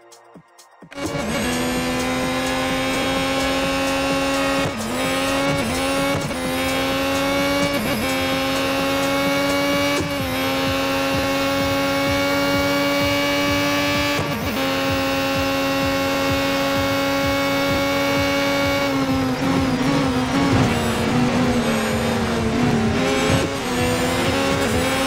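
A racing car engine roars at high revs, dropping briefly at each gear change.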